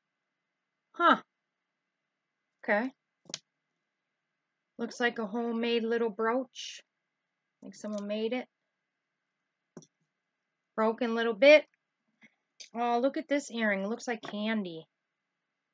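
A middle-aged woman talks calmly and expressively, close by.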